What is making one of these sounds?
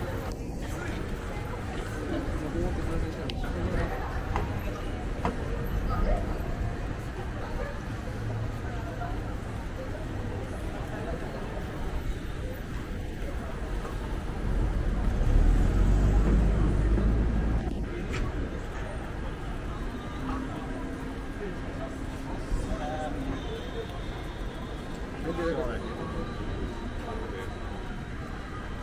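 A city street hums steadily with distant traffic.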